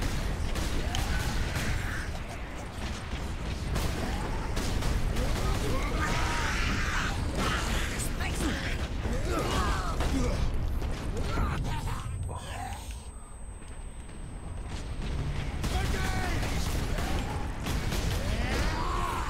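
Blades clash and slash in a close fight.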